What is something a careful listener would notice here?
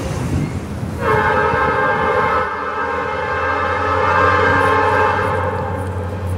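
A train horn blows a long, steady chord in the distance.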